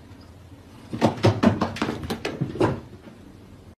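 A cat thumps down carpeted stairs.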